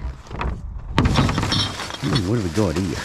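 A plastic rubbish bag rustles and crinkles.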